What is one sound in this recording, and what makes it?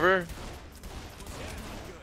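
A pistol fires a shot.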